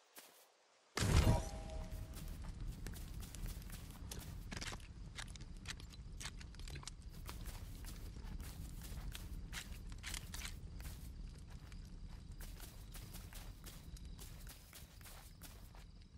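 A campfire crackles and roars.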